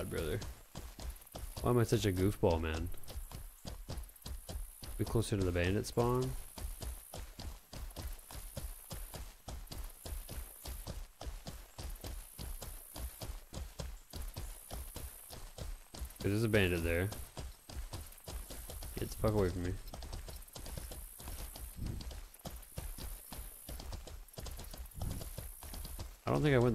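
Horse hooves thud rapidly over soft ground.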